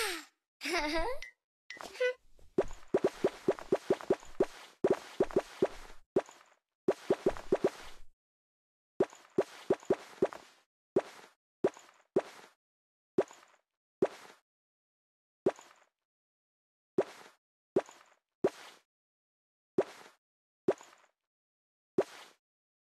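Short pops and chimes ring out as outfits change.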